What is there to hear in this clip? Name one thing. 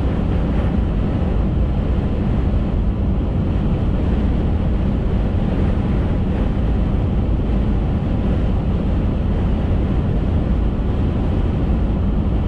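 Tyres roar steadily on an asphalt road.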